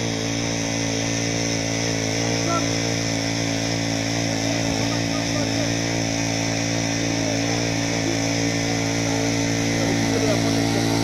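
A hydraulic rescue tool's engine drones steadily.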